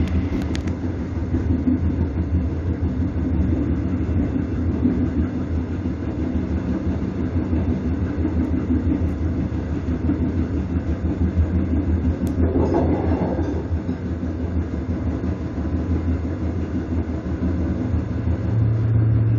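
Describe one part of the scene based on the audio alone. A diesel passenger train rumbles along the rails.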